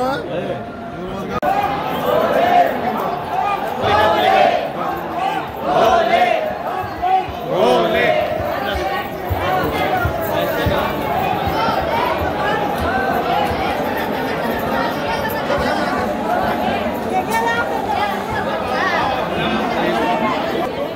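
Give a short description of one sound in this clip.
A crowd of men and women chatter loudly in a busy echoing hall.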